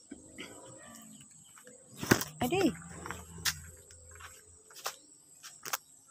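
Footsteps crunch on gravel and dry leaves.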